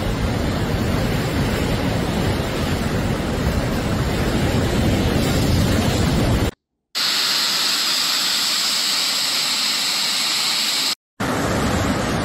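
Floodwater rushes and roars loudly.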